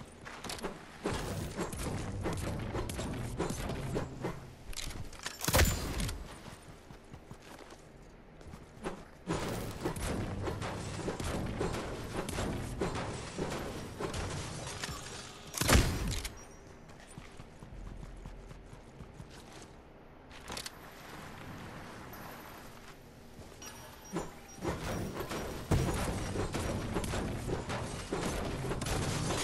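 A pickaxe strikes hard surfaces with repeated sharp cracks.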